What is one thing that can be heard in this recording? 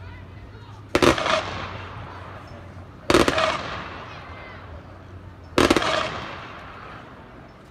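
A marching band blasts three loud, short chords that ring out across an open stadium.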